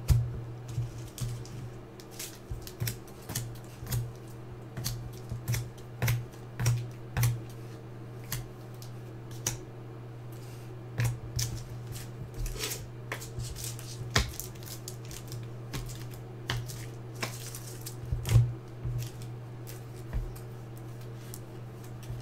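Trading cards rustle and click as they are handled and shuffled close by.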